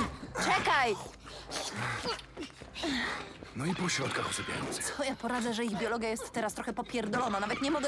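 A woman speaks urgently.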